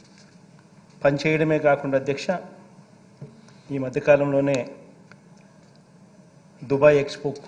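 A man reads out a speech into a microphone in a large hall, pausing between phrases.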